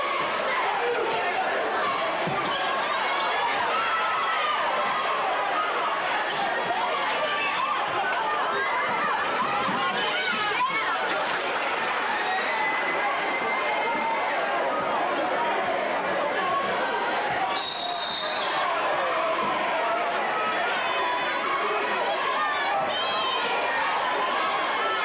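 A large crowd chatters and cheers in an echoing gym.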